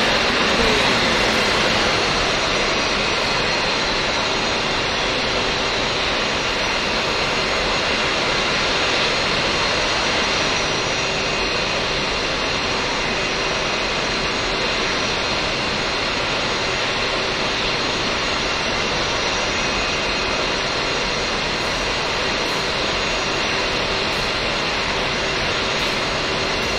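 A jet engine whines and roars steadily as an aircraft taxis.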